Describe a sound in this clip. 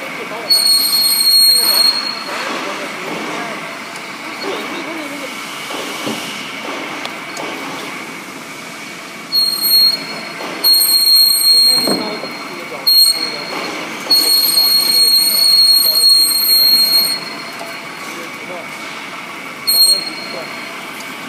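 Metal cutting tools squeal sharply in bursts as they bite into steel.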